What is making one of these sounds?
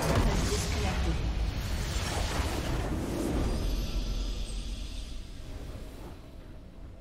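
A loud rumbling explosion roars and slowly fades.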